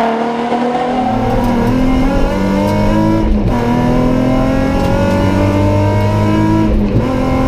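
A rally car engine drones loudly from inside the car as it accelerates.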